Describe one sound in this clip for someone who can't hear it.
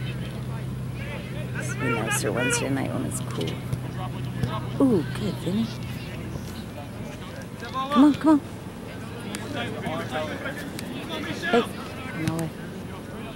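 Young men and spectators shout across an open field outdoors.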